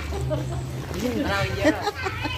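A young girl talks cheerfully close by.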